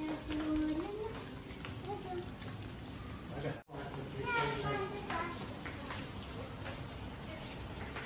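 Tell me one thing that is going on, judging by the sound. Footsteps and flip-flops slap on a hard floor.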